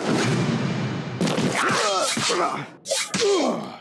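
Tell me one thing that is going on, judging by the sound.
Swords swing and clash in a fight.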